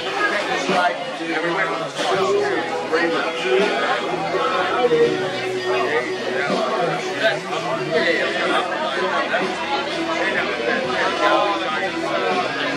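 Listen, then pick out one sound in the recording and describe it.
A crowd of men and women chatters and calls out outdoors at a distance.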